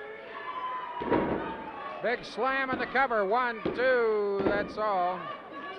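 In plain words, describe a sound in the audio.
Bodies thud heavily onto a mat.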